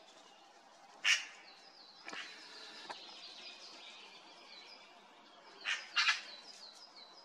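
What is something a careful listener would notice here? A magpie gives a harsh rattling chatter nearby.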